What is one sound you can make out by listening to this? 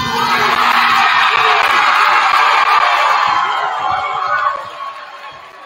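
A crowd cheers loudly in a large echoing gym, then quiets down.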